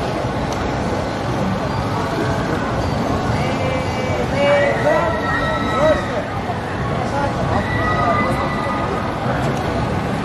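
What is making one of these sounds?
A ride's machinery hums and whirs steadily.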